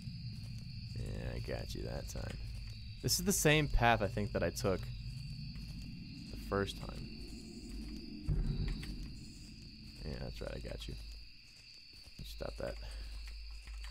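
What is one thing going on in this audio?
A man speaks quietly and close into a microphone.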